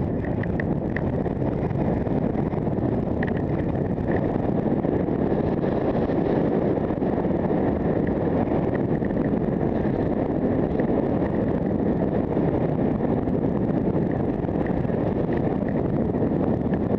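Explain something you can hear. Wind rushes loudly past close by.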